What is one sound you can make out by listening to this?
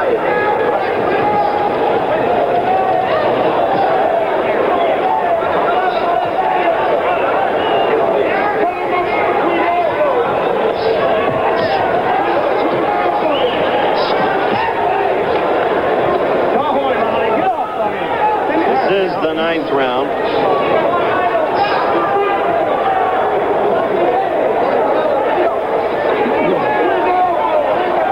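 A large crowd cheers and murmurs loudly throughout.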